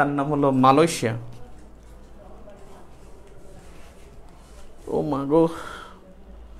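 A man speaks briefly and loudly nearby.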